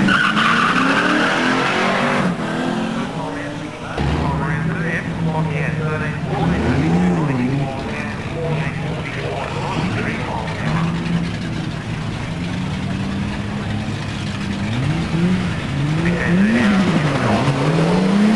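A car engine revs hard in short bursts, rising and falling in pitch.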